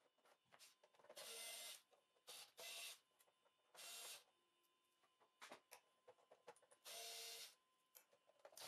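A cordless screwdriver whirs in short bursts.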